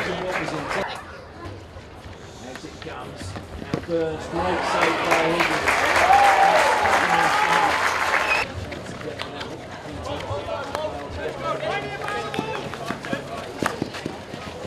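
Hockey sticks strike a ball with sharp clacks.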